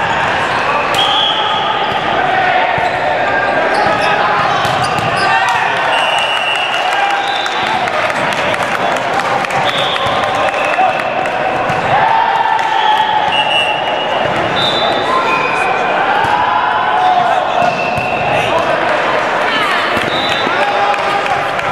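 Sneakers squeak sharply on the wooden floor.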